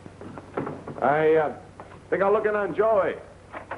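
A man calls out loudly in a room.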